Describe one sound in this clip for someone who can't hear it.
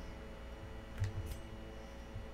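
Soft clicks sound as a game menu changes.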